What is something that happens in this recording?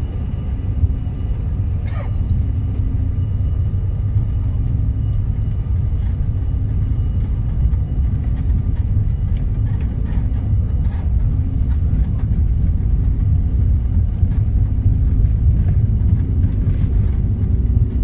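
Rain patters on the window.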